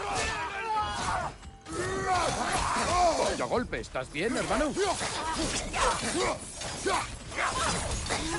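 Heavy blows strike and thud during a fight.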